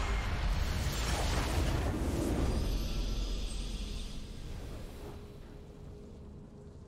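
A bright victory fanfare rings out and slowly fades.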